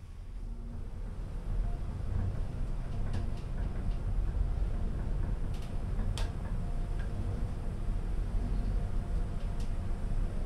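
A lift motor hums steadily as the car rises.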